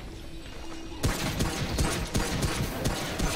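Gunshots fire in rapid bursts, echoing in a tunnel.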